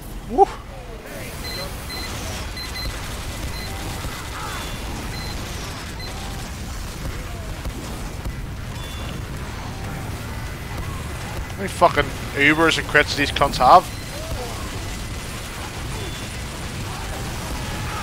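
Gunfire rattles and explosions boom in a busy game battle.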